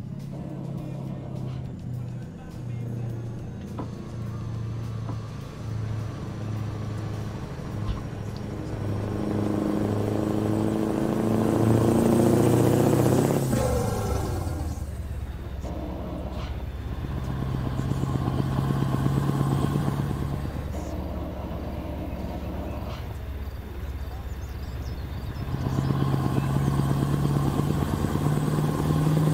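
A truck engine hums steadily and rises and falls as it changes gear.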